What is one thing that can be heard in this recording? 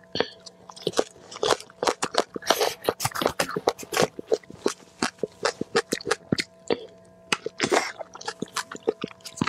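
A young woman chews crunchy food loudly and wetly close to a microphone.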